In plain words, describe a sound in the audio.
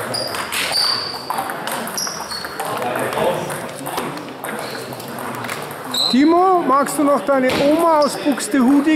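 Table tennis balls click sharply against paddles and tables in a large echoing hall.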